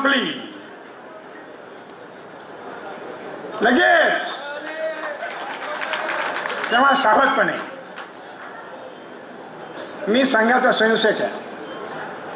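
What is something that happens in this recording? An elderly man speaks with animation into a microphone, heard through loudspeakers in an echoing hall.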